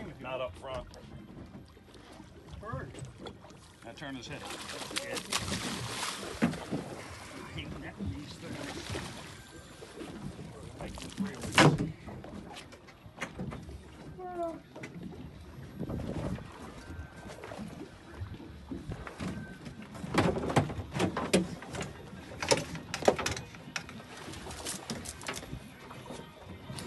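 Water laps against the side of a boat.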